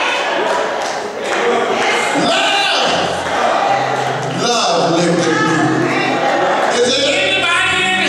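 An elderly man speaks with animation into a microphone, heard through loudspeakers in an echoing hall.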